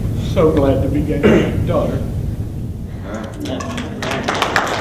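A middle-aged man speaks to a small room with animation.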